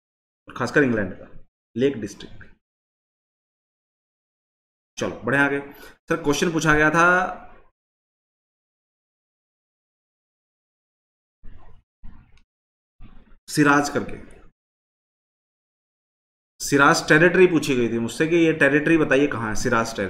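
A man speaks calmly into a close microphone, in bursts with pauses.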